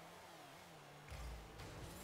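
A game car's rocket boost roars briefly.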